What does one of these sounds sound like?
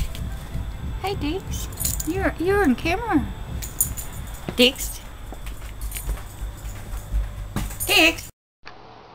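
A dog whines and yelps in high, rising and falling cries.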